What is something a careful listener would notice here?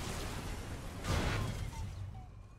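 Laser beams fire with a sharp burst.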